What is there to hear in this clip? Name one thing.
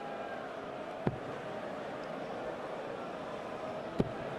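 A dart thuds sharply into a dartboard.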